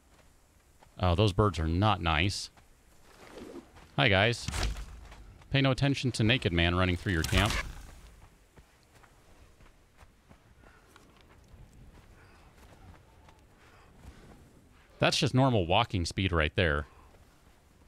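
A man talks casually and close to a microphone, in short bursts.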